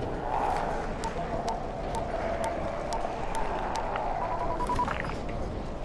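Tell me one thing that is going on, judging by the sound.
A handheld radio beeps in short, evenly spaced pips.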